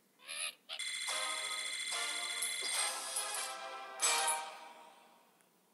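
A cheerful victory jingle plays with twinkling chimes.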